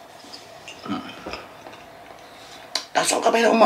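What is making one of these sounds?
A middle-aged man chews food close by.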